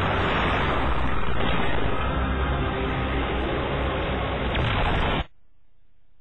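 A large machine stomps and clanks on heavy metal legs.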